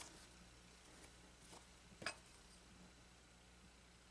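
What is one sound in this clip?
Scissors snip thread.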